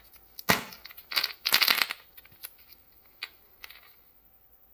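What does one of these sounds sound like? Small plastic toys rattle and clack in a hand.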